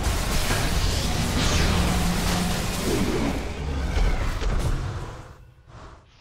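Magic spells crackle and boom in a loud fantasy battle.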